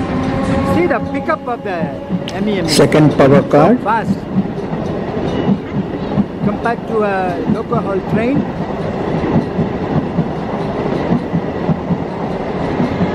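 A passenger train rolls past close by, its wheels clattering steadily over the rail joints.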